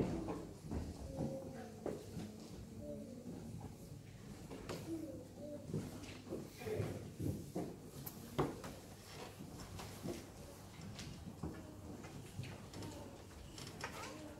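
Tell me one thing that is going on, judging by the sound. Footsteps shuffle and knock on a wooden floor.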